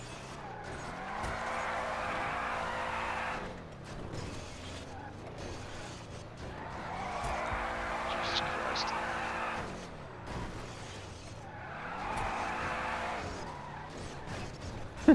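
A car engine hums and revs loudly in repeated bursts.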